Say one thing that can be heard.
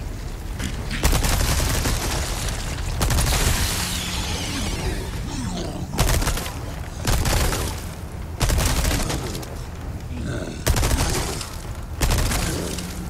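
Pistol shots ring out one at a time, with short echoes.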